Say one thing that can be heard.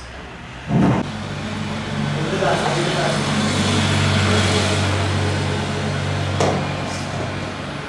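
A mop swishes across a wet floor.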